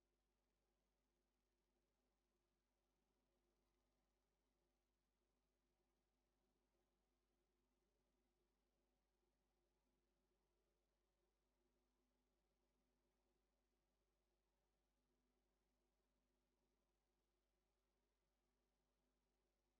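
A truck engine hums steadily at a constant speed.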